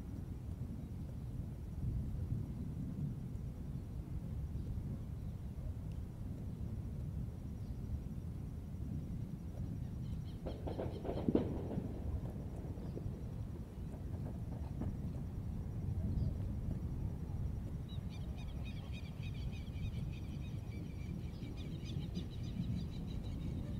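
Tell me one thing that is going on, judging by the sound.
Wind rumbles steadily outdoors by the water.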